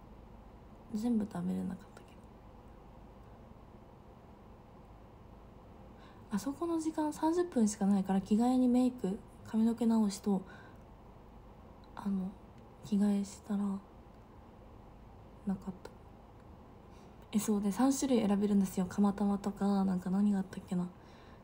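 A young woman speaks softly and calmly, close to the microphone, with pauses.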